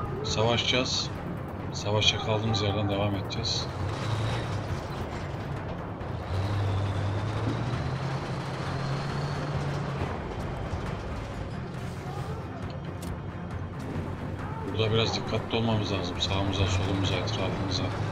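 A tank engine rumbles low and steady.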